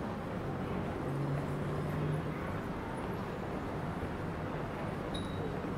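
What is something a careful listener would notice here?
A bicycle rolls past on cobblestones.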